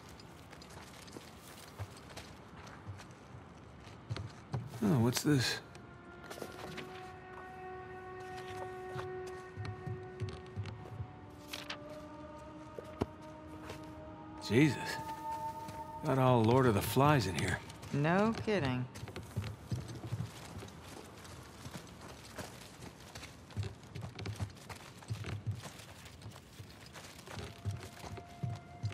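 Footsteps thud softly on a floor.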